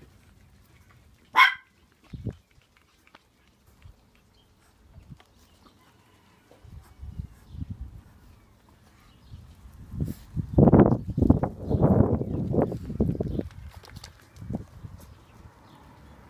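Small dogs patter across stone paving.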